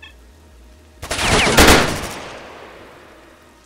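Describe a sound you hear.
A rifle fires a rapid burst of shots that echoes away.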